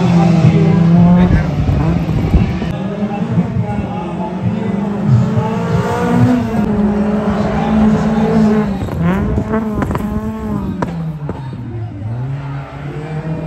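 A car engine revs hard and rises and falls in pitch outdoors.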